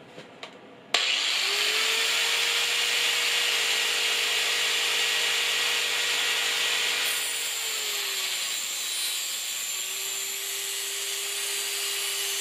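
An electric sharpener motor switches on and whines steadily at high speed.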